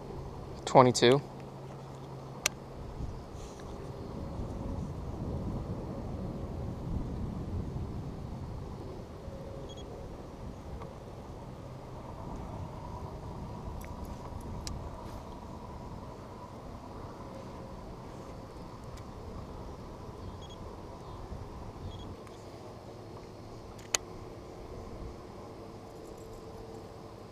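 Wind rumbles across an open outdoor space.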